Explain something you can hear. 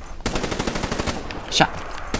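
A gun fires a few shots.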